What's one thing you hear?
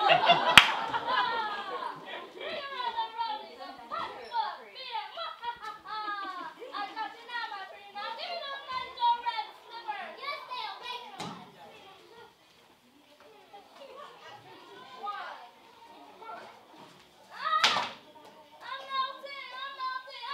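Children speak lines, heard from a distance in a large echoing hall.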